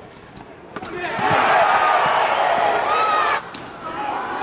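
A crowd cheers and roars loudly in a large echoing gym.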